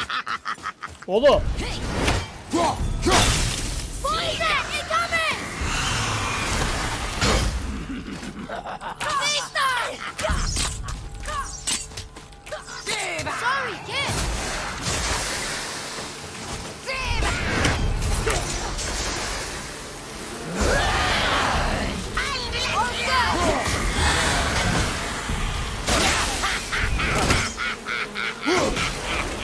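Game weapons clash and thud in combat.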